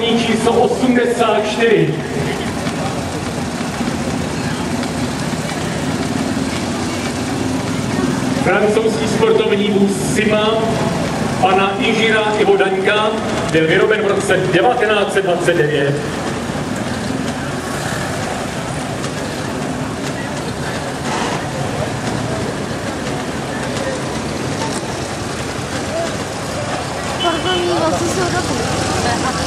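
Vintage car engines rumble as they drive slowly past.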